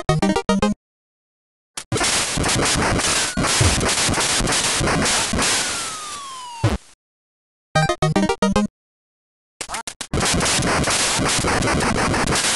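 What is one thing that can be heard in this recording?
Electronic game sound effects play in short bleeps and noisy bursts.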